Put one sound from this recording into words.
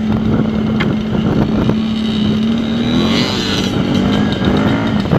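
A dirt bike engine hums loudly and close, rising and falling in pitch.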